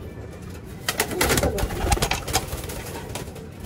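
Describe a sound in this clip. A pigeon flaps its wings loudly.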